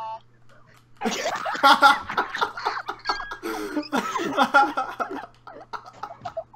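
A young man laughs hard over an online call.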